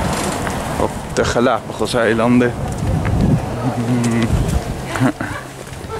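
An elderly woman speaks close by.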